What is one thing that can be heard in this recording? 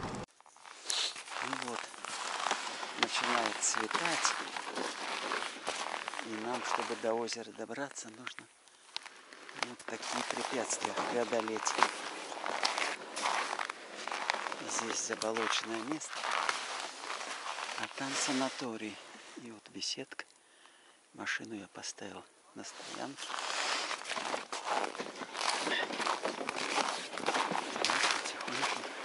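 Footsteps crunch on snow.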